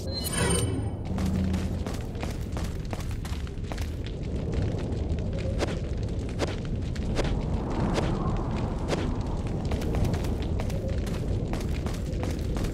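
Footsteps tread steadily on stone steps.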